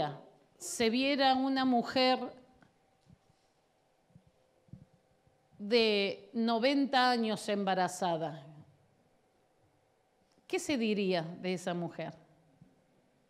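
A woman speaks into a microphone with feeling, in pauses, heard through a loudspeaker in a large room.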